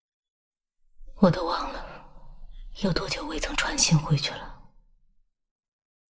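A woman speaks quietly and sadly, close by.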